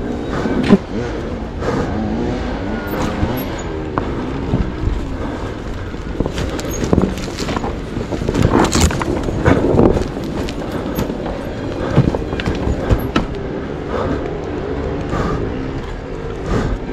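Tyres crunch and thump over roots and dirt.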